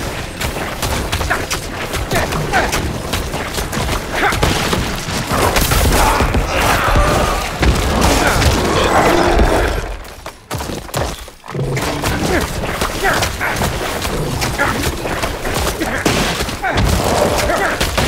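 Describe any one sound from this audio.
Weapons slash and strike monsters in rapid bursts.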